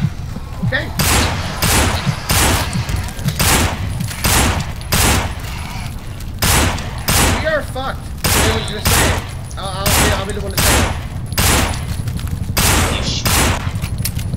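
A pistol fires shot after shot in quick bursts.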